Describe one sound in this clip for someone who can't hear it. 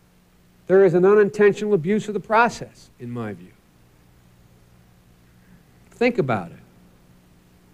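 A man speaks with animation through a microphone, with long pauses.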